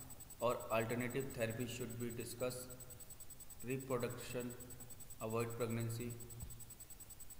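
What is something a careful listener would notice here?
A man speaks calmly, close by, in short phrases.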